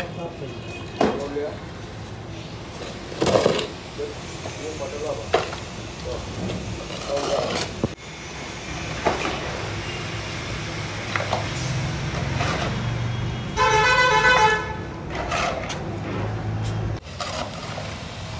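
Bricks and rubble knock and clatter as they are moved.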